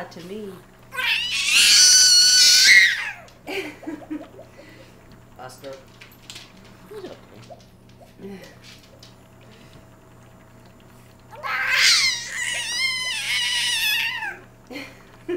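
A baby squeals with delight in high-pitched bursts.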